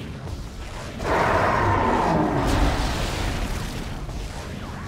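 A plasma gun fires in bursts.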